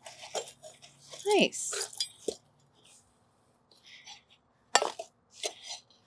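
Metal scrapes and taps on a block.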